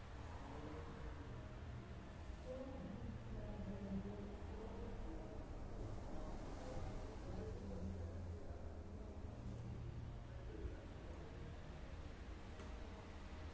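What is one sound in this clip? A young man chants slowly and melodically into a microphone.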